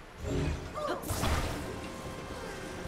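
A shimmering magical hum sounds as a heavy log is lifted.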